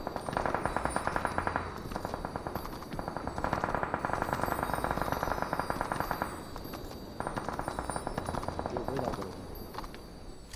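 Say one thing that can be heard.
A ride rumbles along with a fast, steady rattle.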